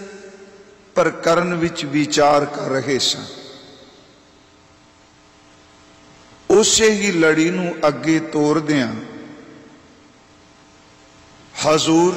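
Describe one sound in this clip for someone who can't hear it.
An elderly man chants in a drawn-out, echoing voice.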